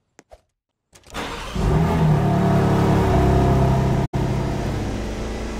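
A car engine roars steadily as the car speeds up.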